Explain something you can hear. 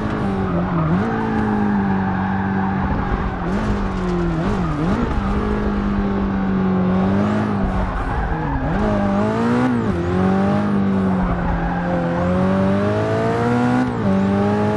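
A racing car engine roars loudly, its pitch rising and dipping as gears shift.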